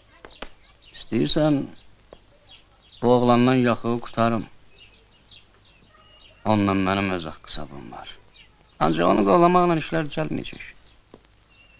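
A man speaks in a low, serious voice nearby.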